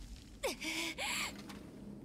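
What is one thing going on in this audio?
A young woman grunts and gasps in pain.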